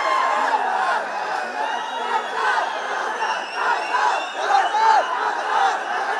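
A crowd of men and women chatters and laughs.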